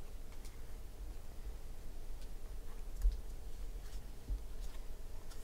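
Trading cards shuffle and slide against each other in hands.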